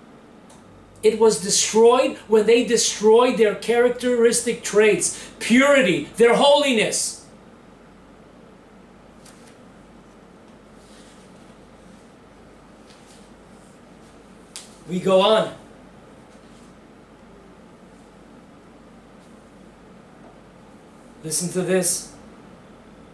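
An older man speaks calmly and close by, with pauses.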